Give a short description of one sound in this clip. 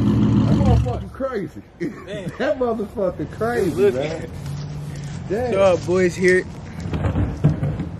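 A young man talks casually close by, outdoors.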